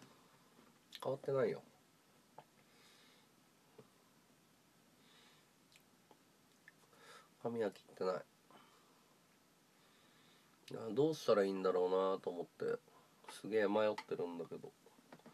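A man speaks close by in short, calm bursts with pauses.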